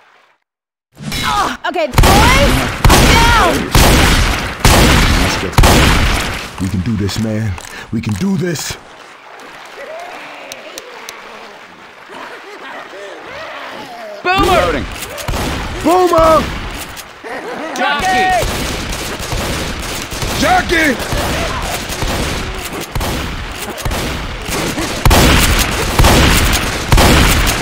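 Shotgun blasts fire again and again at close range.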